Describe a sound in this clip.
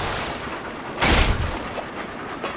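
A wooden gate bursts open with a loud crash.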